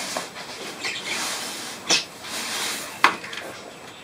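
Water pours from a plastic jug into a dish.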